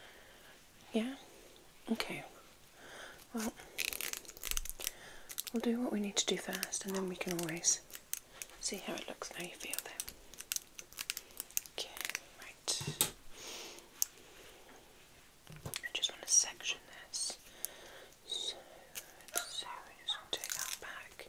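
A woman whispers softly, very close to a microphone.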